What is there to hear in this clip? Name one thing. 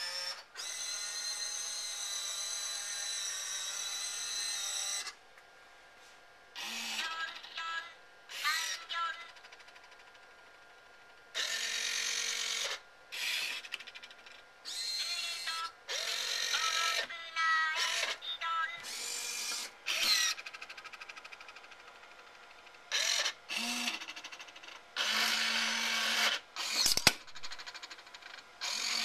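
A small electric motor whines and whirs in repeated short bursts.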